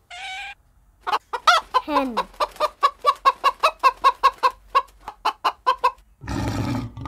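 Hens cluck in quick, steady bursts.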